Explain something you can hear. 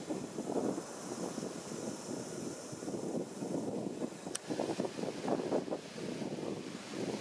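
Wind rustles the leaves of trees outdoors.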